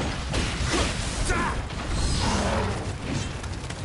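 A large creature roars and growls.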